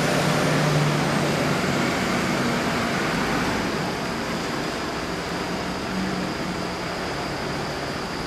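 A Ferrari V12 engine idles.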